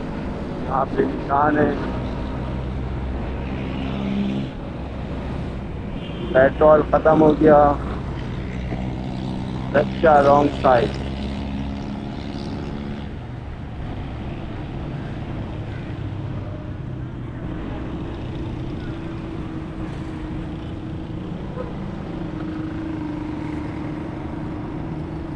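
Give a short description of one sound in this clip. Motorcycles drive past in street traffic.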